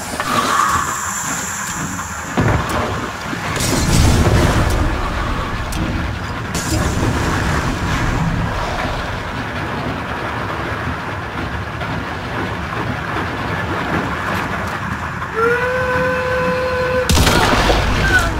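Water splashes and sloshes as someone wades slowly.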